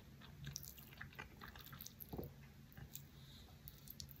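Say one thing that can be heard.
Chopsticks clink against a plate.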